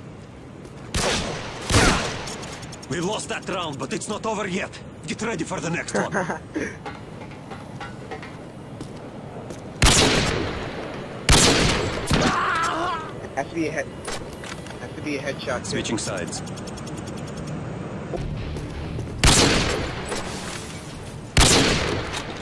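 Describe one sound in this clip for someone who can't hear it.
A rifle fires single loud shots.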